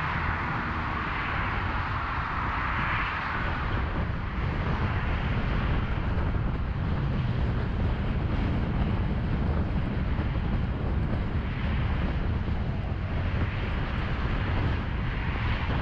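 Traffic roars steadily past on a busy highway.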